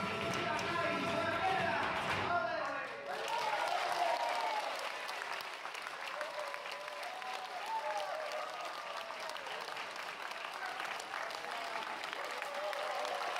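Singers' voices ring out loudly over the music.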